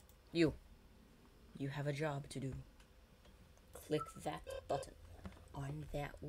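An electronic detector beeps in short high tones.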